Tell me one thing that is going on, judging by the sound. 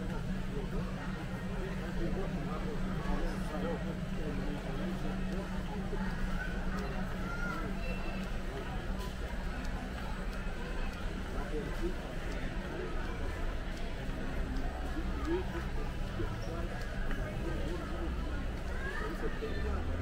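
A crowd of shoppers murmurs steadily in a large echoing hall.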